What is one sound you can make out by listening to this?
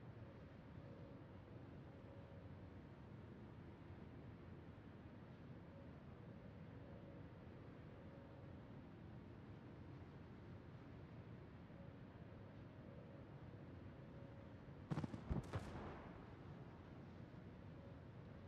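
Water rushes along a ship's hull.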